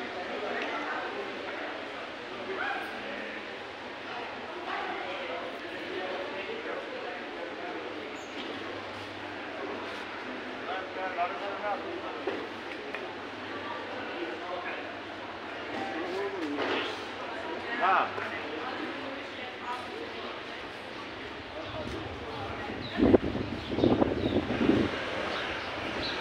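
Men and women chatter outdoors in a street.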